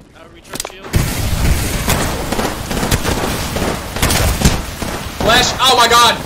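Gunfire rattles rapidly in bursts.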